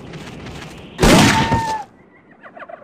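A hyena snarls and yelps sharply.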